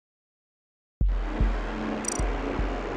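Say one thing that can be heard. A short electronic jingle plays as a round ends.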